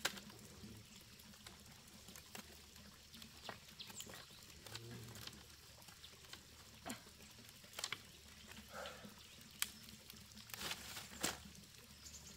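Bamboo strips clatter softly as they are laid on the ground.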